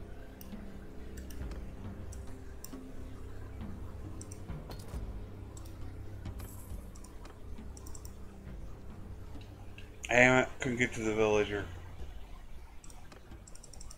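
Soft clicks sound as menu buttons are pressed.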